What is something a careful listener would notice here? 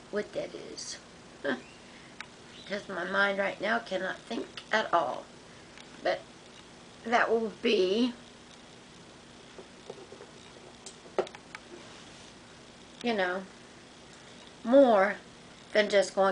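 A middle-aged woman talks calmly and close by, in short bursts with pauses.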